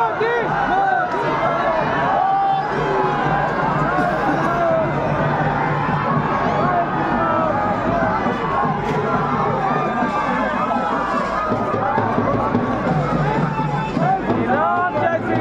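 A large crowd of men cheers and shouts loudly outdoors.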